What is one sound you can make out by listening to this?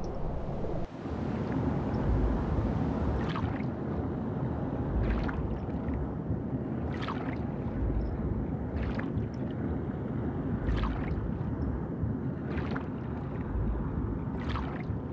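Water rumbles deeply underwater.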